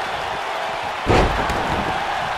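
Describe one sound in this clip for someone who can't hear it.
A wrestler slams heavily onto the ring mat with a loud thud.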